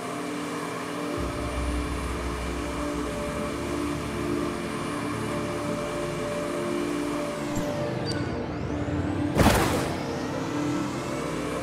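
A hover vehicle hums steadily as it glides along.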